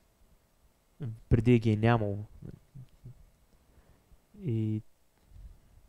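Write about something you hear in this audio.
A young man speaks calmly in short phrases.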